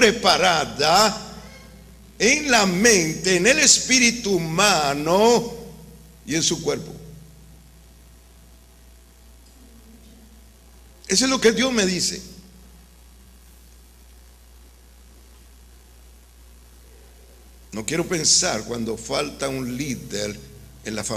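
A middle-aged man preaches with animation into a microphone, in bursts with pauses, in an echoing room.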